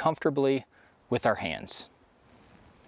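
A man speaks briefly and clearly, close by.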